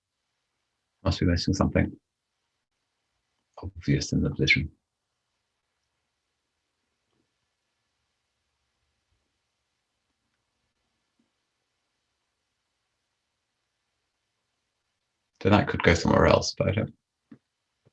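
A man speaks calmly in short bursts through a microphone.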